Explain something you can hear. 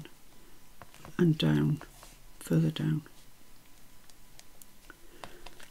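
Paper rustles and scrapes softly as hands press it flat.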